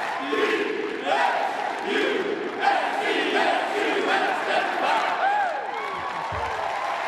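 A man shouts into a microphone with excitement.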